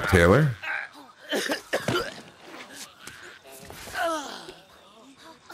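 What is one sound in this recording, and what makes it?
A man groans and gasps in pain close by.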